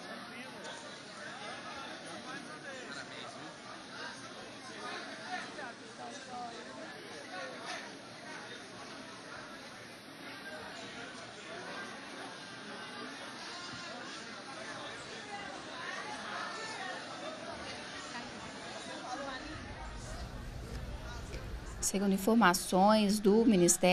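A large crowd chatters and murmurs.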